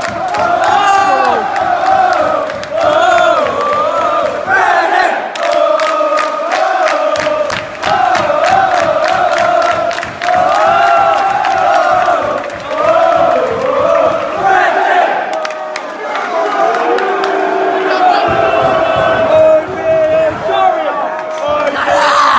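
A large crowd of men chants and sings loudly together, close by and all around.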